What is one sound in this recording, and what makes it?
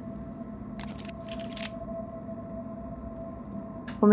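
A pistol is drawn with a short metallic click.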